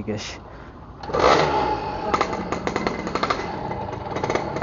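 A motorbike engine starts and runs with a rough rattling idle.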